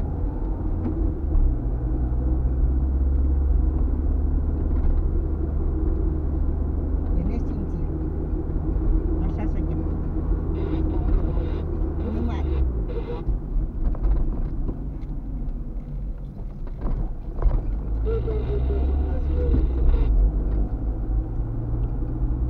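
Tyres rumble over the road surface.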